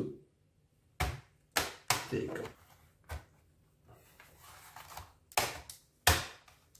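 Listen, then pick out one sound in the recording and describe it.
Plastic parts click and snap as fingers pry at a laptop case.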